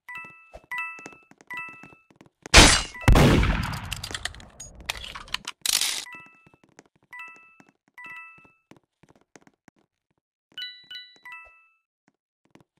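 Bright little chimes ring again and again as coins are picked up.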